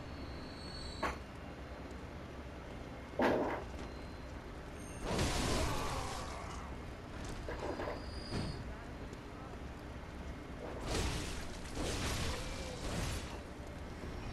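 Heavy weapons swing and strike with loud whooshing impacts.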